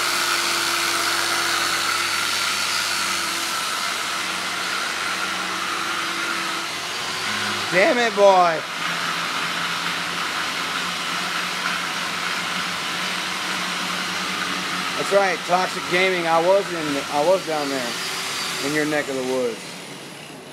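An angle grinder whines steadily as it grinds metal close by.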